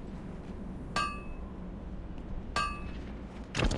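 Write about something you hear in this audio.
A metal blade rings with a sharp clang.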